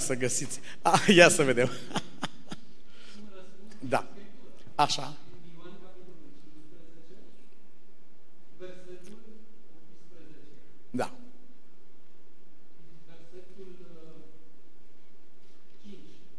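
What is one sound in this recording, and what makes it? A middle-aged man speaks with animation into a microphone in a large echoing hall.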